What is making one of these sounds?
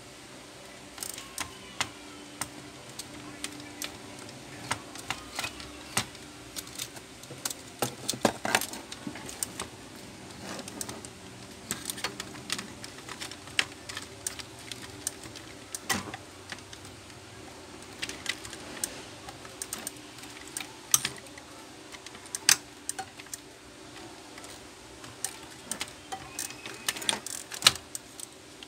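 Plastic parts click and rattle as hands handle a printer mechanism.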